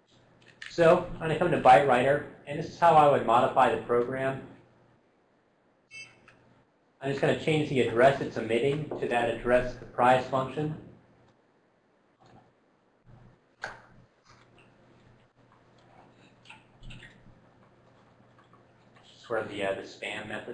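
A man lectures calmly into a microphone.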